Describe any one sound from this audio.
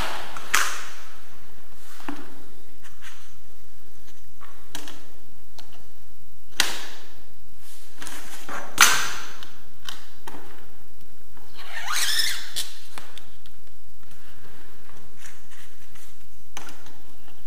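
A wooden board knocks and bumps as hands handle it.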